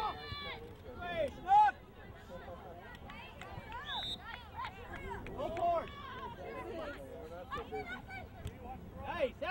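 Spectators and players shout and call out outdoors across a large field.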